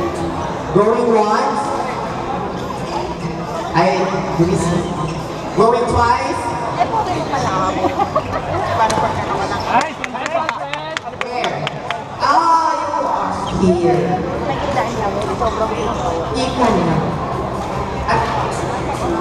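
Many people talk and call out across a large echoing hall.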